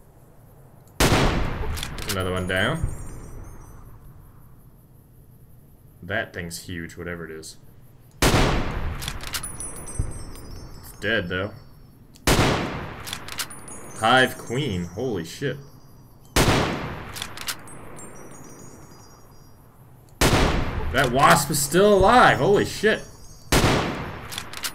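A rifle fires loud shots that echo away.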